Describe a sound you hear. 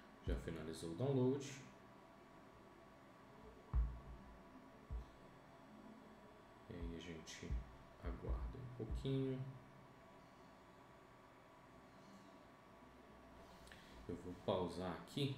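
A man speaks calmly into a close microphone, pausing often.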